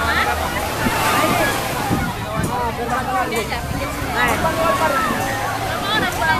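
A crowd of children and adults shout and call out excitedly nearby.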